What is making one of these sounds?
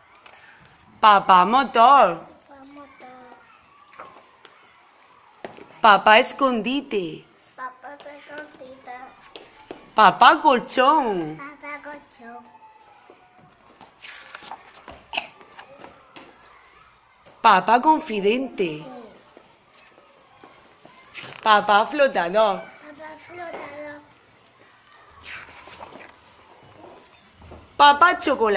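Young children speak one at a time, close by, in high voices.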